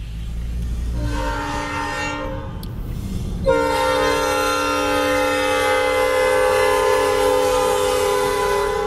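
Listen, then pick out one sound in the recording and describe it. A train horn blares loudly, in long blasts.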